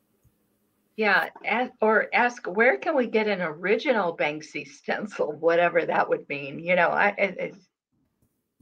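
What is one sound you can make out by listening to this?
Another middle-aged woman speaks with animation over an online call.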